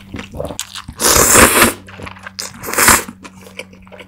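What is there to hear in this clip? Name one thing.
A young woman slurps noodles loudly, close to a microphone.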